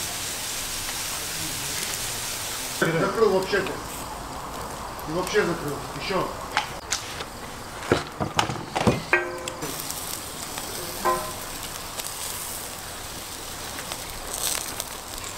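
Meat sizzles over hot coals.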